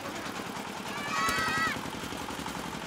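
Children laugh and shout excitedly.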